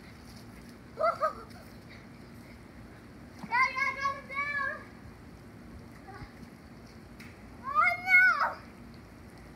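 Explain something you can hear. A young boy shouts excitedly nearby, outdoors.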